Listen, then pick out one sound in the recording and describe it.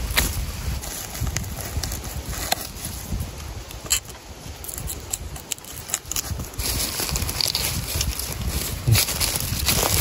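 Dry leaves and stalks rustle and crackle under a gloved hand.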